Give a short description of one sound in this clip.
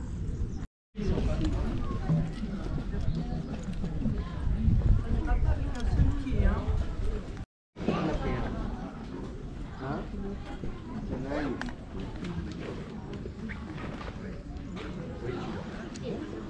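People in a crowd chatter nearby.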